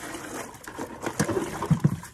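A plastic pot knocks down onto hard ground.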